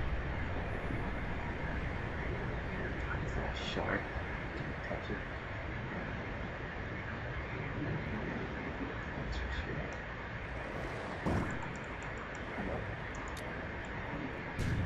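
Underwater ambience gurgles and rumbles steadily.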